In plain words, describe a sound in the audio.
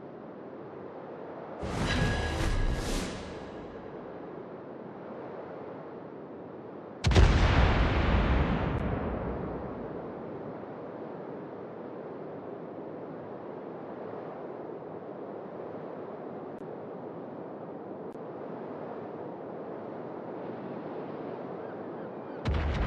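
Water rushes and splashes steadily around a moving ship's hull.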